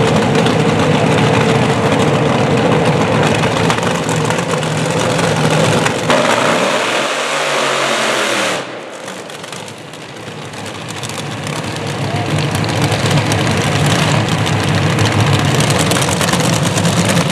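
Dragster engines roar loudly nearby.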